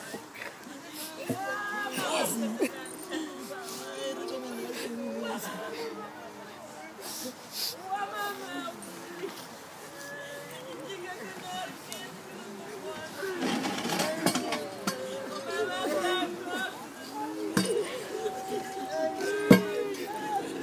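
Men and women murmur quietly nearby.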